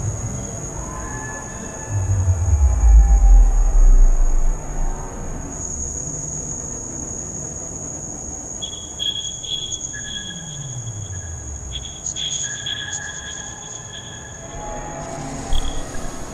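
Electronic synthesized tones and beats play.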